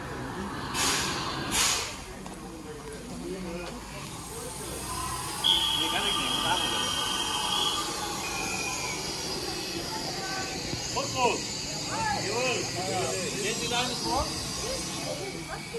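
Footsteps walk on a paved platform.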